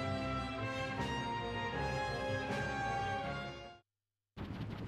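Lively game music plays with a bright melody.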